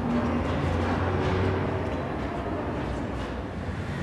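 Footsteps echo down a long corridor.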